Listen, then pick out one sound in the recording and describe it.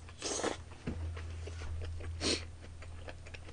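A young man slurps noodles loudly up close.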